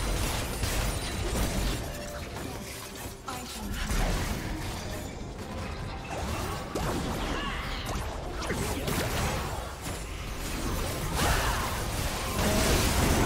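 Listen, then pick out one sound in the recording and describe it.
Game spell effects whoosh and zap during a fight.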